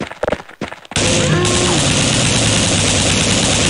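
A shotgun fires in loud blasts.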